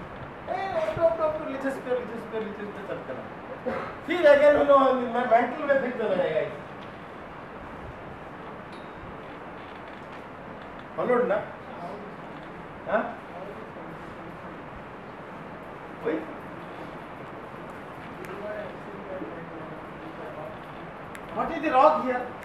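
A middle-aged man lectures calmly, pausing often.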